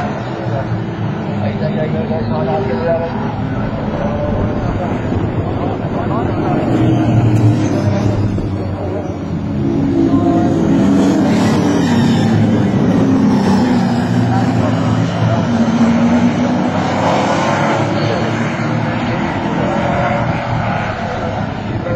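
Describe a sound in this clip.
Racing car engines roar loudly as they speed past.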